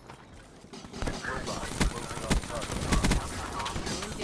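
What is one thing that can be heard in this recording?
Video game gunfire cracks in short bursts.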